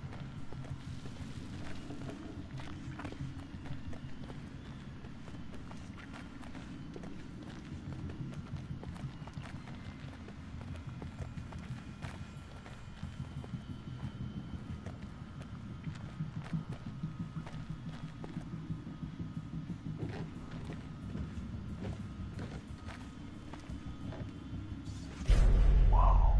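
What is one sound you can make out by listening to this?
Footsteps shuffle slowly over a wooden floor.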